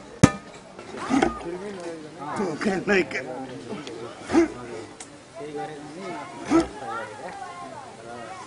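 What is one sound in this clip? Men talk close by.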